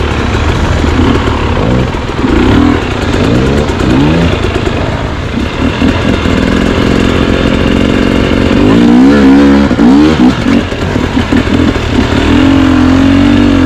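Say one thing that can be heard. Another dirt bike engine revs and bogs further up a slope.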